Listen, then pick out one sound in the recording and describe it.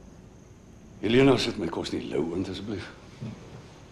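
An older man speaks calmly, close by.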